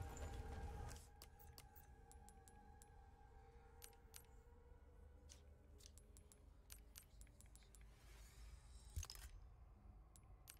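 Soft menu clicks tick now and then.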